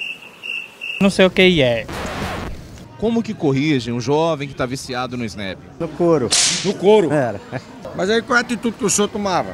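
A middle-aged man speaks into a microphone, asking questions.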